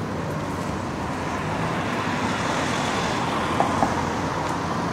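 A car drives past.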